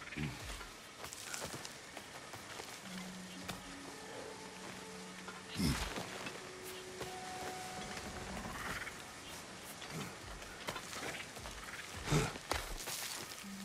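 Hands scrape and grip on rock while climbing.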